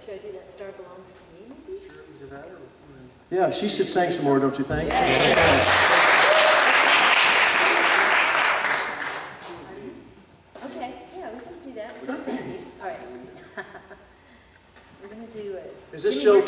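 A small string band plays acoustic instruments.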